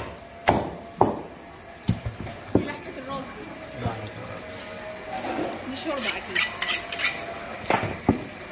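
A cleaver chops through a large fish onto a wooden block.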